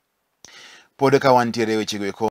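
A man speaks clearly and steadily into a microphone.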